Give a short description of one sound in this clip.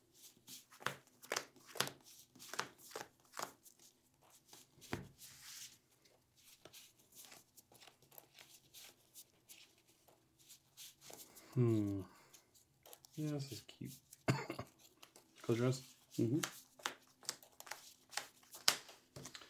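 Playing cards are shuffled with quick soft riffles and clicks.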